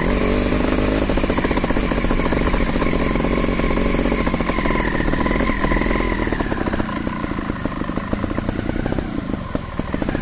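Bicycle tyres roll over a bumpy dirt trail.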